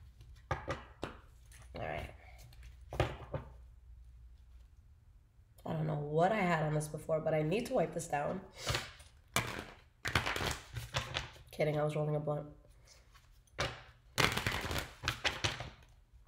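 Cardboard packaging rustles and crinkles in a young woman's hands.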